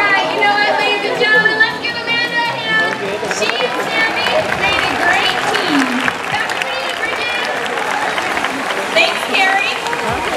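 A large crowd chatters and murmurs outdoors.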